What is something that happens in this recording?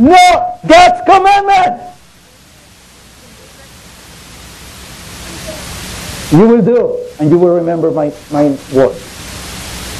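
A man speaks loudly and dramatically.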